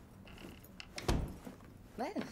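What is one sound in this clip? A door shuts with a knock.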